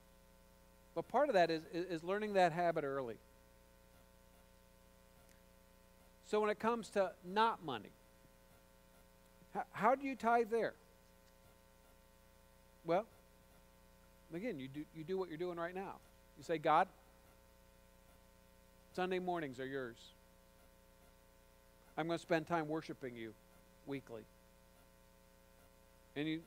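A man speaks calmly through a microphone and loudspeakers, pausing between phrases.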